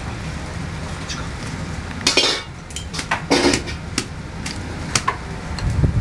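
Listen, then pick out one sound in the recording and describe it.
Water splashes as a metal strainer is shaken hard.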